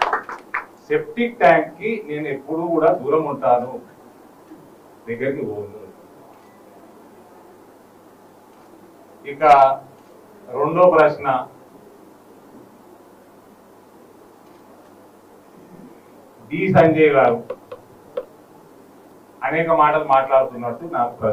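A man speaks forcefully into a microphone, in short bursts with pauses.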